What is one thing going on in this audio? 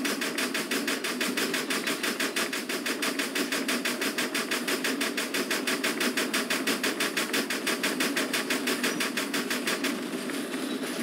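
A steam locomotive chugs in fast, even puffs.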